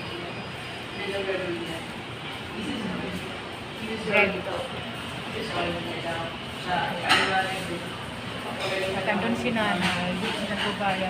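A woman talks close by with animation.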